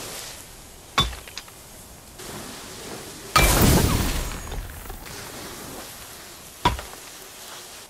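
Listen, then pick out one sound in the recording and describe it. A sharp impact bangs against stone.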